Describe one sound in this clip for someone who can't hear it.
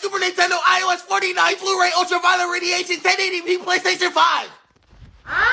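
A young man speaks loudly and with animation, close by.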